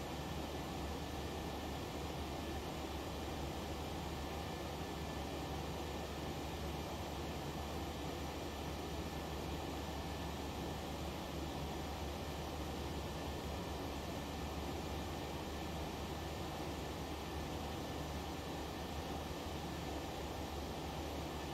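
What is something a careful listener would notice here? Jet engines roar steadily in a cruising airliner's cockpit.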